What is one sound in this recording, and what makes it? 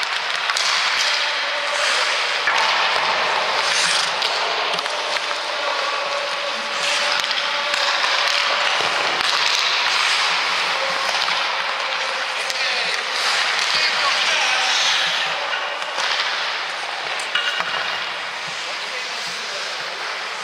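Ice skates scrape and swish across the ice in a large echoing rink.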